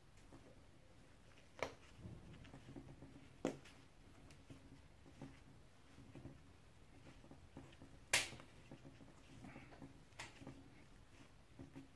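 Plastic caps click as they are pressed into a battery.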